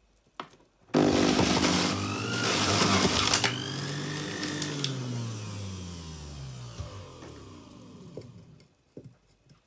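An electric juicer motor whirs loudly, then slowly winds down.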